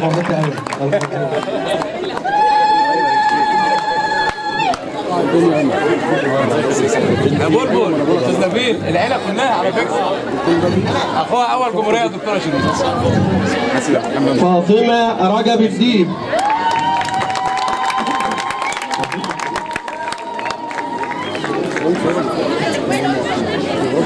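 A crowd of people chatter throughout.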